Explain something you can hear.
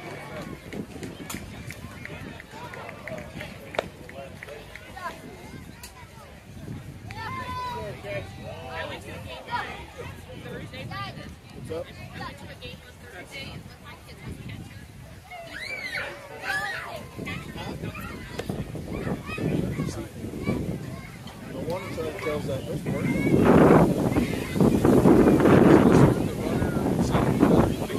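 Adults and children talk and call out nearby, outdoors.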